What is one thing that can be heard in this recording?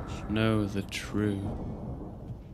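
A man speaks briefly and calmly into a nearby microphone.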